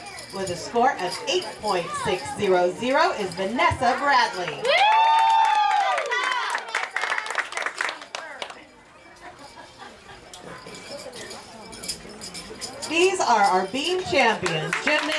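Young girls talk and chatter excitedly close by.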